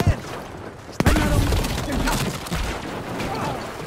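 An explosion booms loudly nearby.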